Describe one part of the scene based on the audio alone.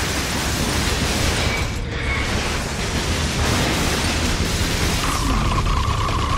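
Electric blasts zap and crackle.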